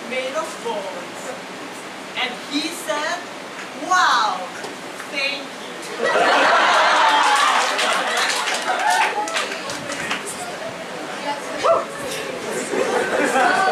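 A young woman sings into a microphone over loudspeakers in a large hall.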